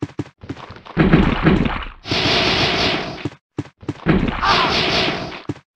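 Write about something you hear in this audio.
Zombies groan and moan low and hoarse.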